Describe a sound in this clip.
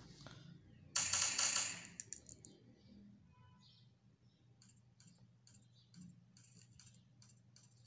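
Game gunshots fire in quick bursts from a phone speaker.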